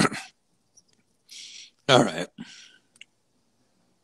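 A man sips from a mug.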